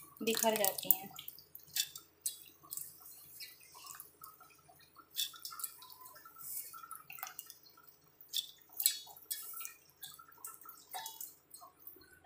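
Fingers rub and crumble dry food in a metal bowl with a soft, gritty rustle.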